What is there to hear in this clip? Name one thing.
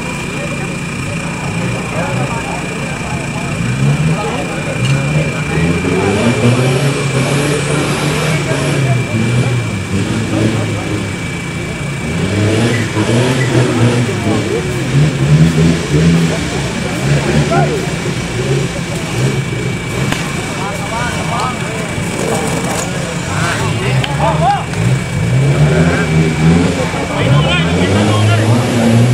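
A vehicle engine revs hard in bursts.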